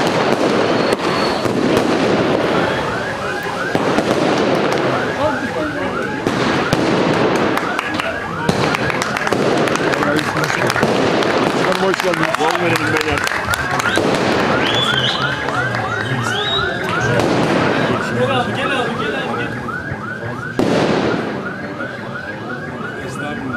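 A crowd of men talks and cheers loudly close by, outdoors.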